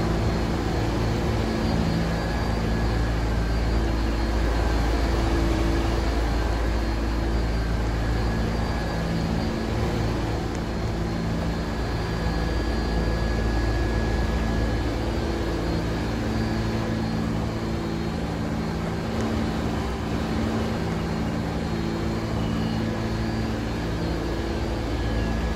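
A subway train rumbles and hums steadily.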